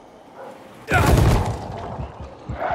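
A heavy thud sounds as someone lands hard on wooden planks.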